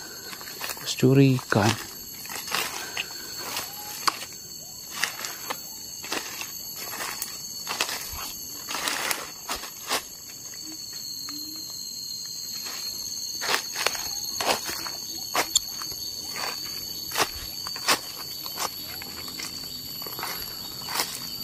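Footsteps crunch and rustle through dry fallen leaves.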